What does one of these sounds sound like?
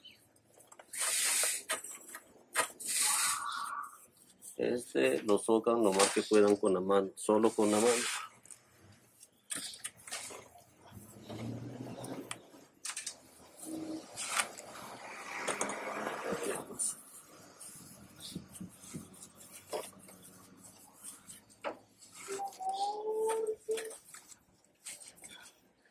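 A hand twists a metal oil filter with faint scraping.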